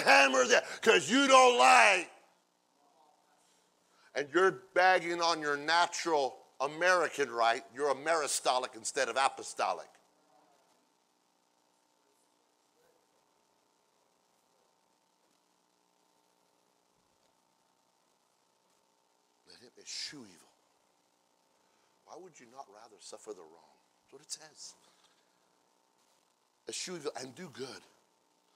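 A middle-aged man preaches with animation into a microphone, with long pauses between loud, emphatic phrases.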